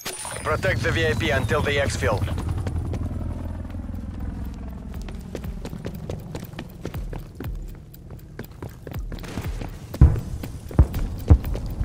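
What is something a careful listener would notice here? Footsteps run across pavement.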